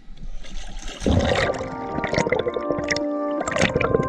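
Water bubbles and gurgles, heard muffled from underwater.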